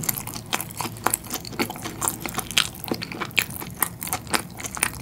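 A man chews bread with soft, wet, crackly sounds close to a microphone.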